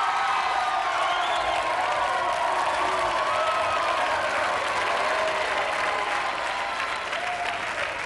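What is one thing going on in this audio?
Music plays loudly in a large hall.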